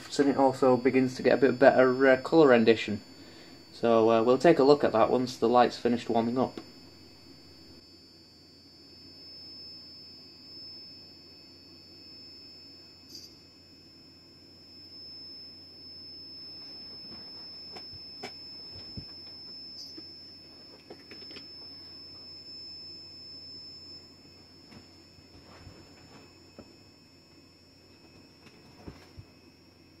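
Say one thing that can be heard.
A lamp gives off a steady, faint high-pitched whine.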